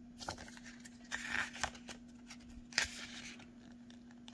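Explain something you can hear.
Paper pages rustle as a booklet's pages are turned by hand.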